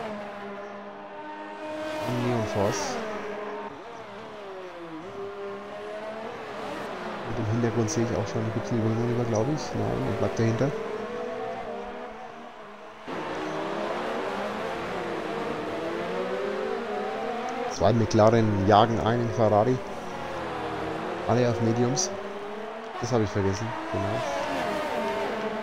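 Racing car engines whine loudly, revving up and down as the cars speed past.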